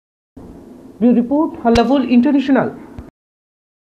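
A woman talks loudly and with animation nearby.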